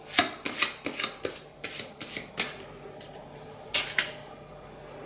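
A card taps lightly onto a table.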